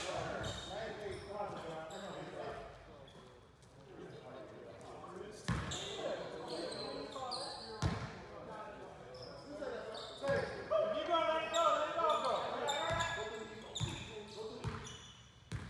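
A basketball is dribbled on a hardwood court in a large echoing gym.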